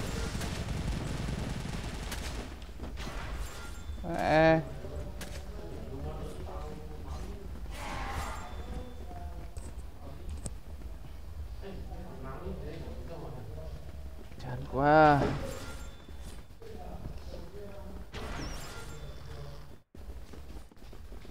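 Blades slash and clang in a fast fight.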